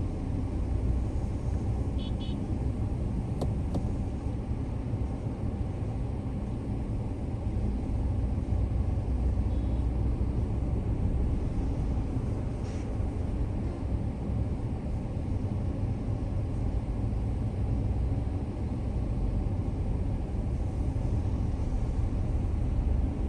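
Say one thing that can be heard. A car engine rumbles steadily from inside the vehicle.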